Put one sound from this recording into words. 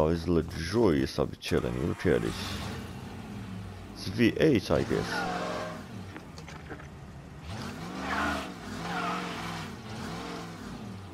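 A car engine idles and revs up and down.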